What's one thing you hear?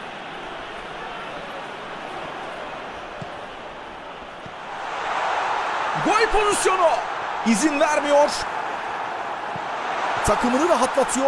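A stadium crowd roars steadily and swells louder as the attack nears goal.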